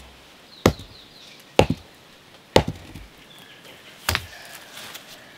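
Wood knocks hard against stone in a few heavy blows.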